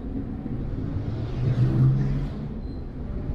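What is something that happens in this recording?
Motorcycles rumble past close by.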